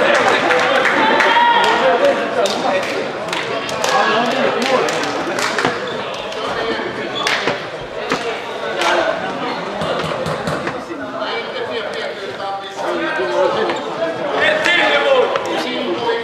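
Young men shout and talk to each other across an echoing hall.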